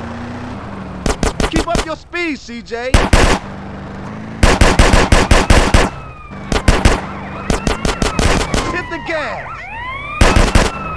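Guns fire in rapid bursts of loud shots.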